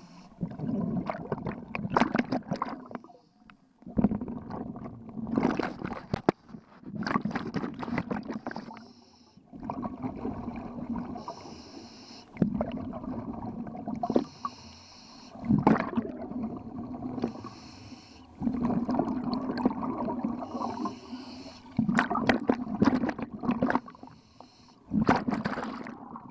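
A scuba diver breathes in through a regulator with a rasping hiss.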